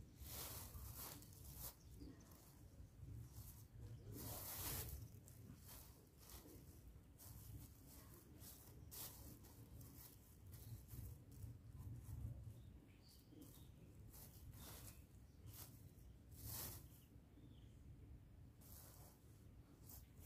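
A plastic bag crinkles and rustles as hands open it.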